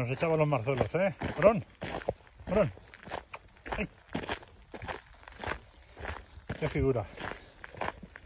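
A dog's paws crunch on gravel.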